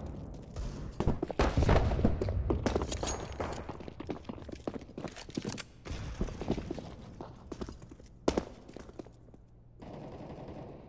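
Quick footsteps run on a hard floor.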